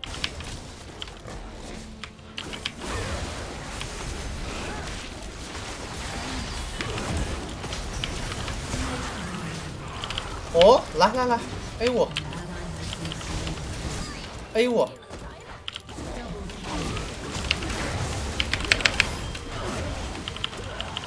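Game sound effects of clashing blows and spell blasts play throughout.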